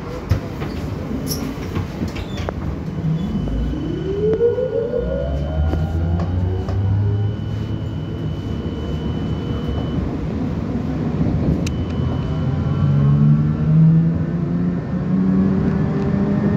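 A train rumbles steadily as it rides along.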